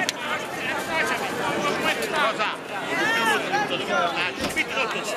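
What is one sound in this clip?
A crowd of people talks loudly and overlapping close by.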